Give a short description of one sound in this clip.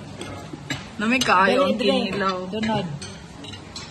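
A second woman speaks nearby.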